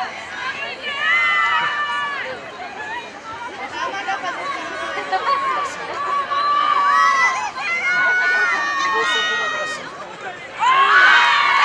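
Spectators shout and call out across an open field.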